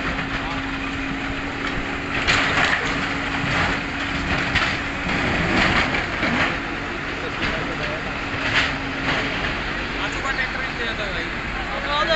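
A backhoe engine rumbles steadily.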